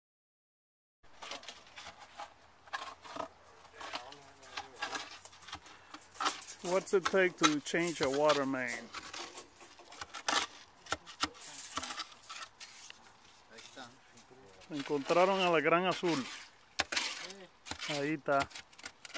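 Hands scrape and dig through loose soil close by.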